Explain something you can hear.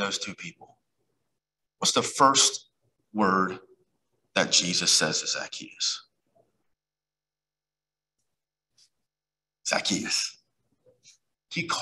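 A man speaks in short phrases with pauses, heard through a microphone.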